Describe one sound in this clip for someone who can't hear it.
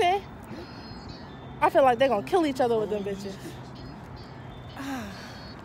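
A young woman talks casually close to the microphone, outdoors.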